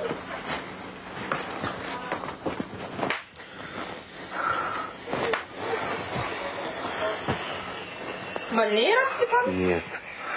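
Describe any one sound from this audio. Cloth rustles as a young man handles a shirt.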